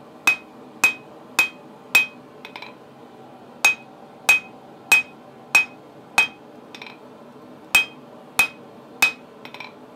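A hammer strikes hot metal on an anvil in quick ringing blows, in bursts with short pauses.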